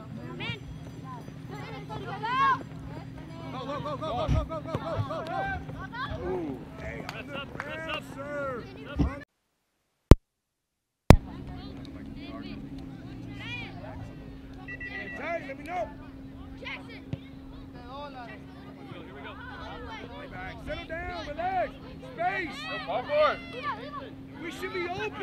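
Children shout and call out in the distance across an open field.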